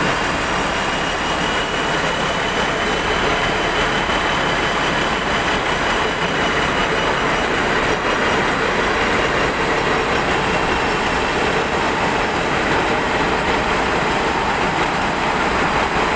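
Grain pours down steadily in a loud rushing hiss onto a heap.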